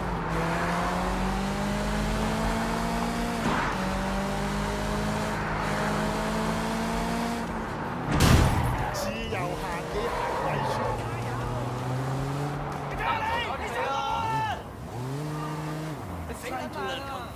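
A car engine revs hard, rising through the gears.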